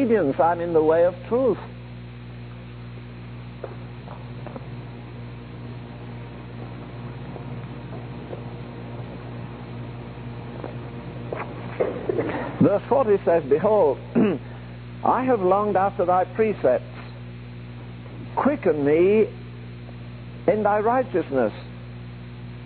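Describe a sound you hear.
An elderly man preaches with emphasis, in bursts with long pauses.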